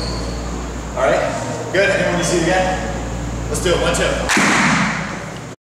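A man speaks calmly, instructing, in an echoing room.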